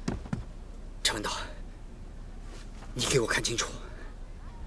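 A man speaks sternly and loudly.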